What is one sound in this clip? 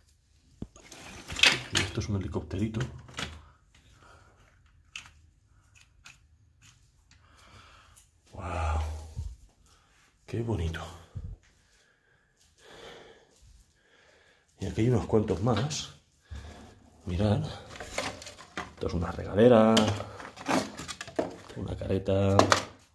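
Plastic and paper rustle and clatter as a hand rummages through junk.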